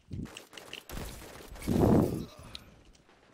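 Gunshots bang in quick bursts.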